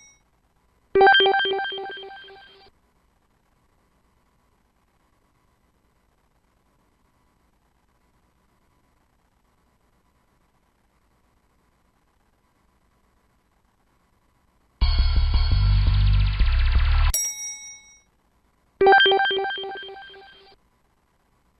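A computer quiz game plays a bright chiming jingle for a correct answer.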